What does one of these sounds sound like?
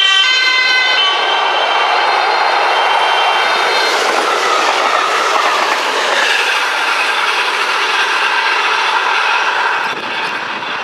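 A train rolls past close by with a loud rushing roar.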